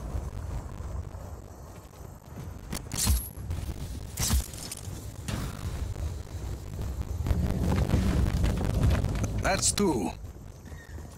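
A huge stone ball rolls past with a heavy, low rumble.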